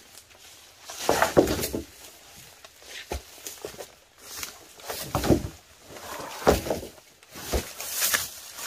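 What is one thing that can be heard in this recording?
Bamboo poles knock and thud against each other as they are dragged.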